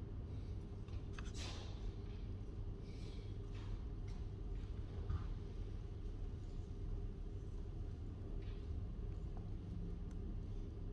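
Paper rustles softly as a hand touches the pages of a book.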